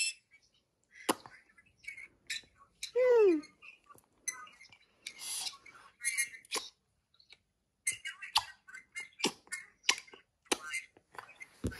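Small clicks come from a toddler fiddling with a plastic object.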